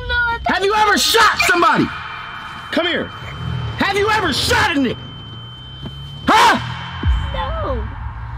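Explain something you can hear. A young girl laughs and talks excitedly.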